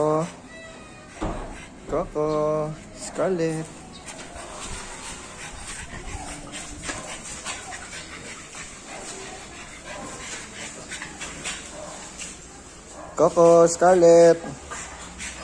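A small dog barks loudly nearby, in short bursts.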